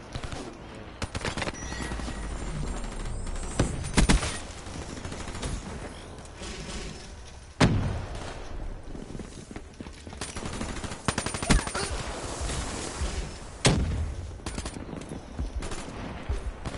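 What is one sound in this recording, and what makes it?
Rapid gunshots crack in short bursts.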